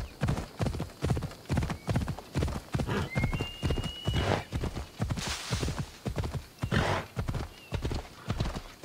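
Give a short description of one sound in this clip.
A horse gallops with quick, heavy hoofbeats.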